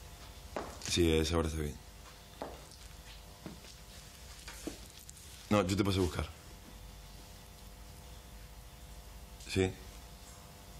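A young woman speaks calmly.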